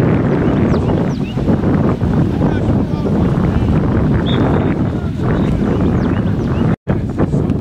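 A group of young men and women talk and call out.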